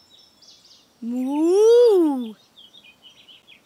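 A cartoon cow gives a long, loud moo.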